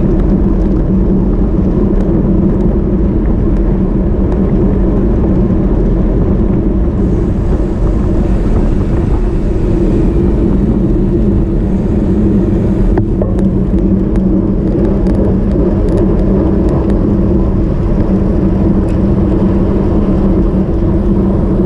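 Wind rushes loudly and steadily past a bicycle on a road.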